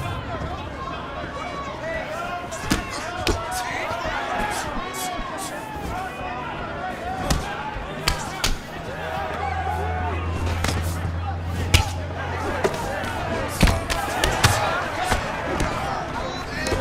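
A crowd cheers and murmurs steadily.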